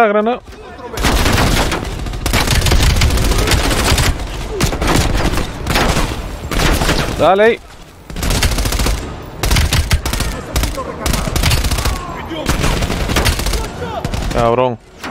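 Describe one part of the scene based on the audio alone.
A rifle fires in rapid bursts, echoing in a large hall.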